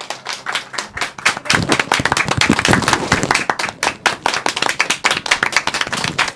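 A young woman laughs and speaks happily into a microphone.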